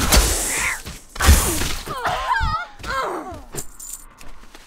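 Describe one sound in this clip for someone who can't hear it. Magic blasts whoosh and crash in a fight.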